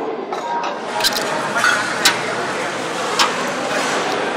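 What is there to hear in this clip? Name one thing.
Metal plates clink.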